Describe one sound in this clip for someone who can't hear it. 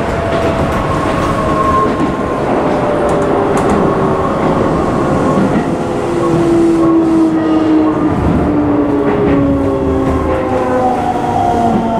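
A train rumbles loudly along the tracks.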